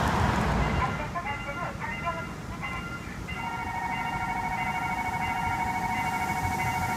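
A railway crossing bell rings rapidly and steadily.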